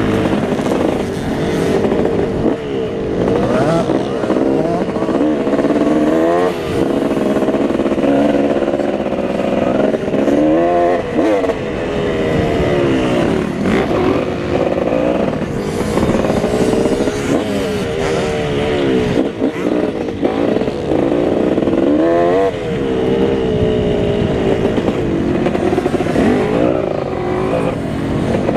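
A dirt bike engine roars close by, revving up and down as gears shift.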